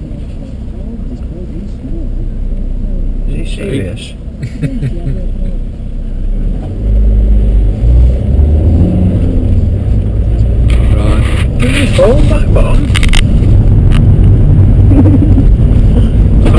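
A car engine rumbles low and steadily from inside the car.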